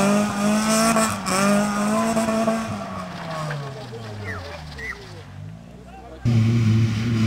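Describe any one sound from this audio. A car engine revs hard and then fades as the car drives away.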